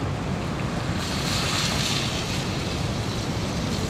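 Water pours from a jug into a pot.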